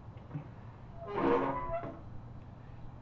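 A heavy metal grill lid creaks open.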